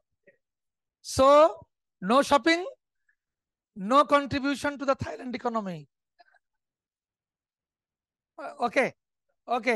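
A man speaks loudly and with animation, heard through an online call.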